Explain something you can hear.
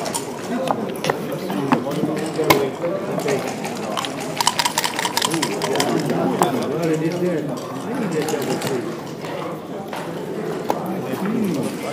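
Plastic game pieces click as they are slid and set down on a board.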